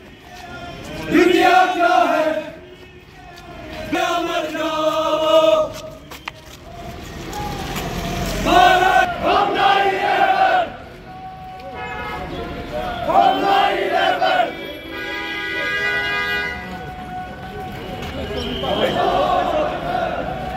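A crowd of men chants slogans loudly in unison outdoors.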